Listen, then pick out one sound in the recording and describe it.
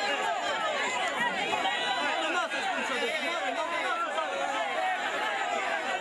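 A large crowd of men and women chatter and call out loudly all around, outdoors.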